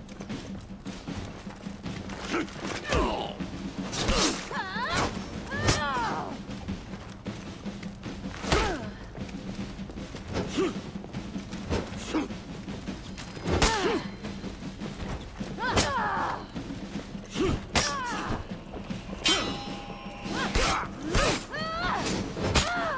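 Steel swords clash and clang again and again.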